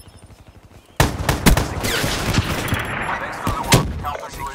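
Rapid gunfire bursts out close by.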